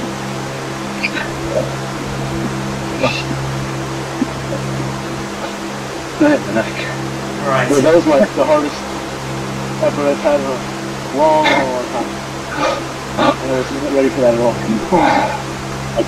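An indoor bike trainer hums steadily.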